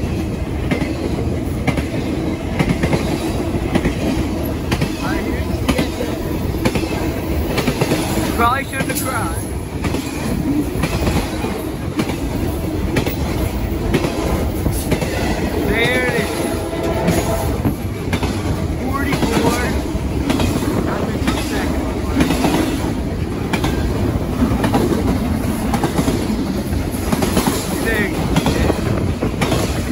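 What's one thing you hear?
A freight train rumbles past close by, wheels clattering steadily on the rails.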